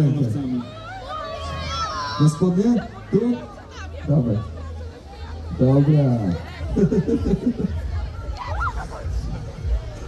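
Girls laugh and chatter nearby.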